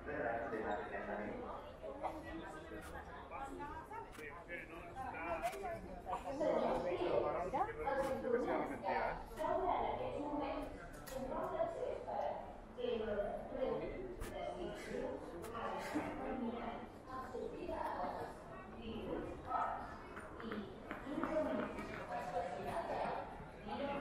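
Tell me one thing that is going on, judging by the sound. Many people talk at once in a large echoing hall.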